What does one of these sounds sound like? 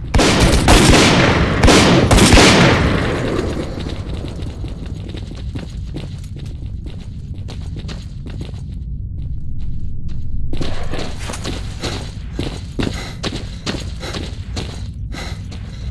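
Heavy footsteps scuff on rough ground at a steady walking pace.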